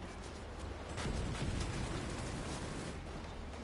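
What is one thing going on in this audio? A grenade explodes with a deep, loud boom.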